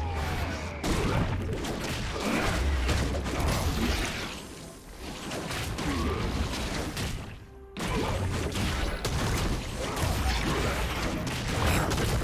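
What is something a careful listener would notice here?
Video game spell effects crackle and thump in a battle.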